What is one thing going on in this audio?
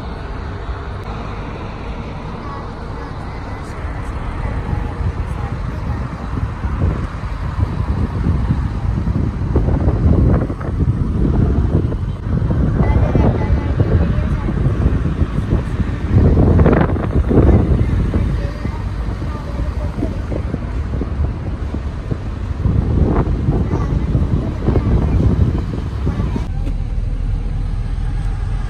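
Wind rushes and buffets loudly past a moving car's open window.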